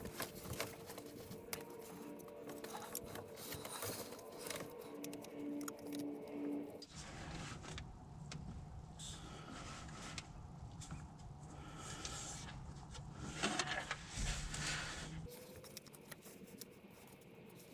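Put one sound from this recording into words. Tools click and clink against metal parts.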